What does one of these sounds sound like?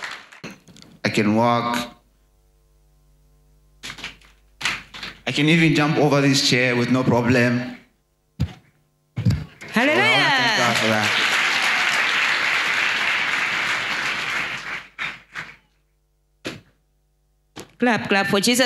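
A man speaks loudly and with animation through a microphone in a large echoing hall.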